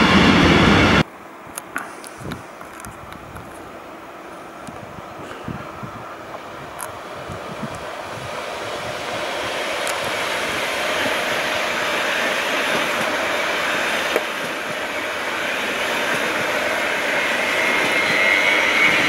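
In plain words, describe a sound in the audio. A passenger train approaches and rushes past close by outdoors.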